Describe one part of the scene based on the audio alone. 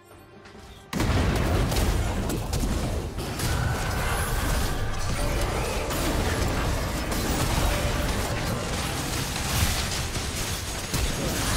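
Spell and combat effects crackle, boom and clash in a fast-paced battle.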